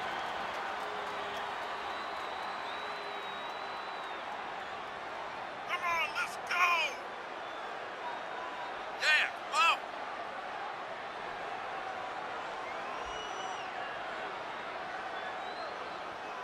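A large crowd cheers steadily in a big open arena.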